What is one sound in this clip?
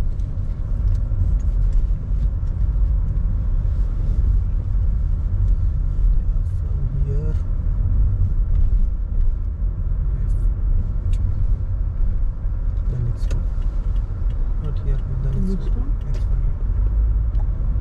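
A car engine rumbles steadily from inside while driving.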